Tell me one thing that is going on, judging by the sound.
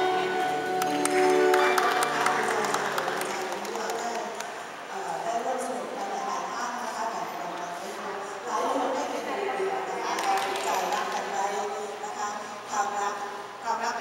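A middle-aged woman sings into a microphone, heard through loudspeakers in a large echoing hall.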